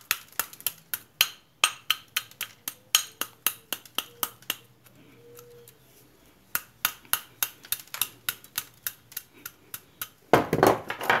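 A hammer taps rapidly on metal.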